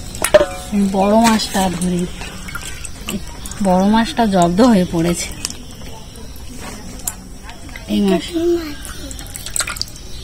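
Water splashes as fish are handled in a basin.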